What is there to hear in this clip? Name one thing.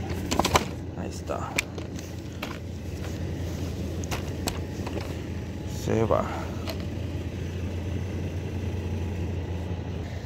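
A folding stroller clicks and clatters as it is handled.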